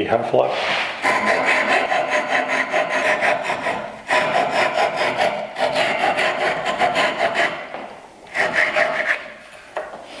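A wooden block rasps back and forth in quick strokes.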